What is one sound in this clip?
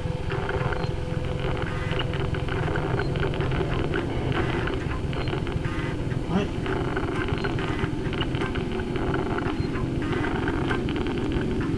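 A young man talks steadily through a headset microphone.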